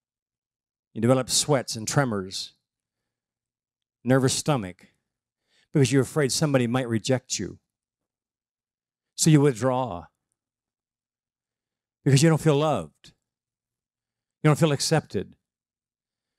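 An older man speaks through a microphone in short, measured phrases with pauses between them.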